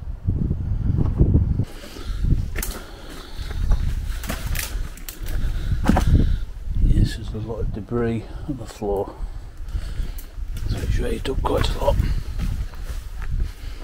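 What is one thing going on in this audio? Footsteps crunch and scrape over loose stones.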